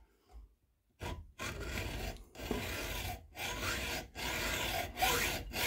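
A hacksaw cuts in back-and-forth strokes.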